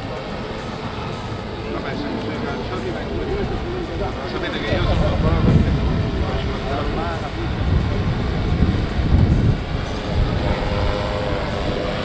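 A drone's rotors buzz steadily overhead.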